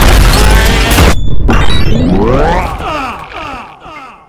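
A huge explosion booms and rings out.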